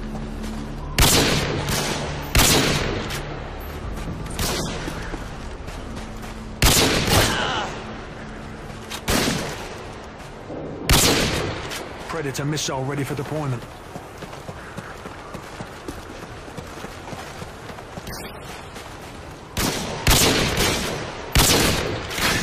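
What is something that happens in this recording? A rifle fires loud shots that echo briefly.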